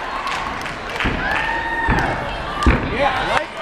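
A gymnast's feet thud on a sprung floor while tumbling.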